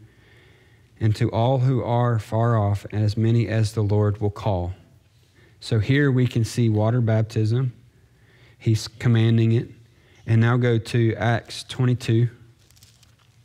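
A man reads aloud steadily through a microphone.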